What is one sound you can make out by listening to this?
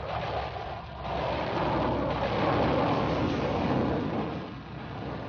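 A missile launches with a loud rushing roar.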